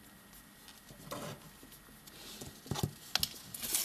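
A paper sticky note rustles.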